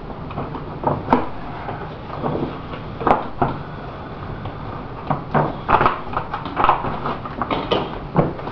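A long hollow part knocks and scrapes against a hard surface.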